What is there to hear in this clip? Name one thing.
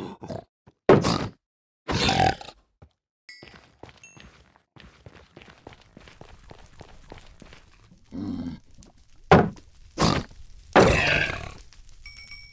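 A creature grunts as it is hit.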